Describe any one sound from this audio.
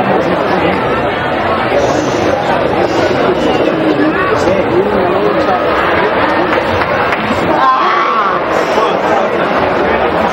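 A large crowd murmurs and shouts in an open stadium.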